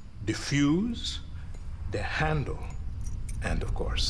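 A man speaks quietly and slowly.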